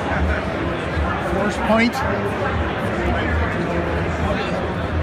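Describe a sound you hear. A crowd of people chatter throughout a large, echoing hall.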